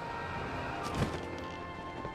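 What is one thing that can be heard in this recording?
A glider snaps open with a sharp flap.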